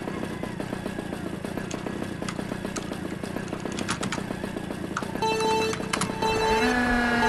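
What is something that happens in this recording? Kart engines idle with a low hum.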